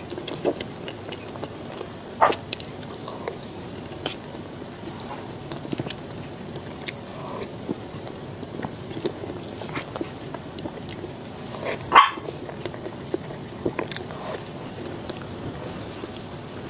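A spoon clinks and scrapes against a plate.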